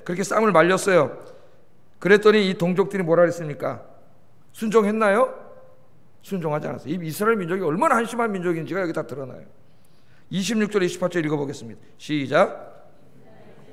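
A middle-aged man speaks calmly and clearly through a microphone, in short phrases with pauses.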